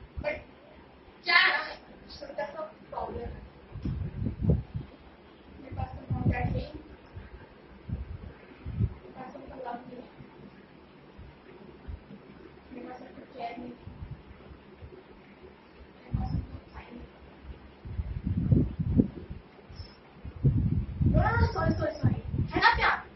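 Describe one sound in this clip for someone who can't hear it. A young woman speaks calmly and close by, with pauses.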